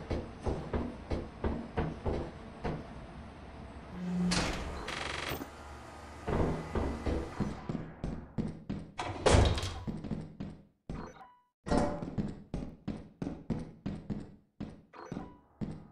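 Footsteps clang quickly on metal stairs and floors.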